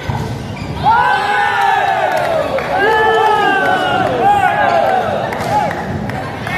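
Young men shout and cheer loudly in a large echoing hall.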